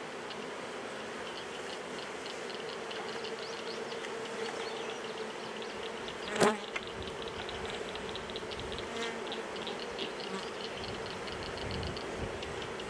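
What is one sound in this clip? Bees buzz steadily close by.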